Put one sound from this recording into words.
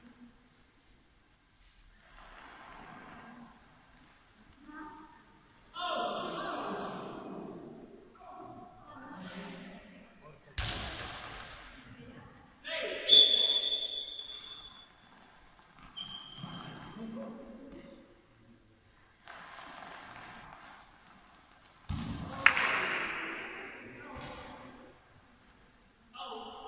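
Young players shout and call out across a large echoing hall.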